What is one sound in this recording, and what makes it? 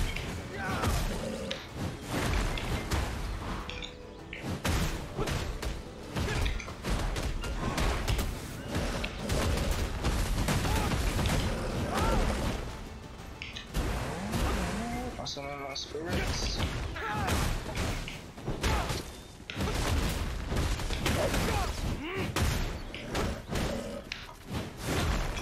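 Sword strikes and combat effects clash repeatedly.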